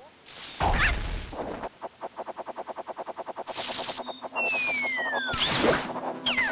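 Video game sound effects whoosh, buzz and chime.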